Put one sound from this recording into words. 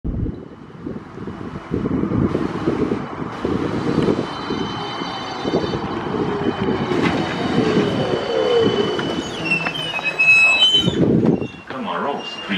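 A trolleybus hums as it pulls up close by.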